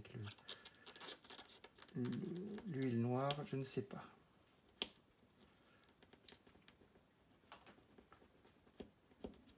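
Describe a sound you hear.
Small plastic and metal parts click and tap lightly.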